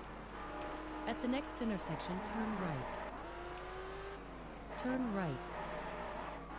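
Tyres squeal as a car swerves and corners.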